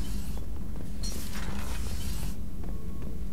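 A sliding door opens with a hiss.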